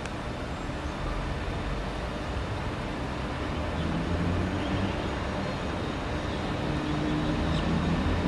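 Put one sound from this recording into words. A train approaches with a low, growing rumble.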